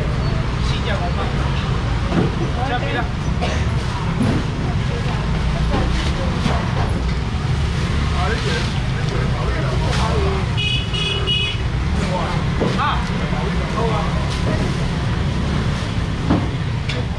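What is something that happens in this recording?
A busy market crowd chatters all around.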